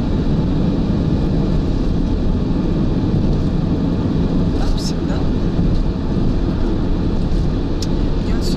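Wind roars loudly against a moving car.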